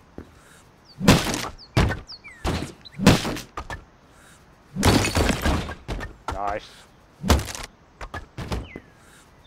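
A sledgehammer smashes into wooden planks with heavy thuds and cracking.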